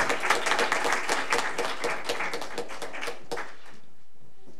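A small group of people applaud in a room, the clapping fading out.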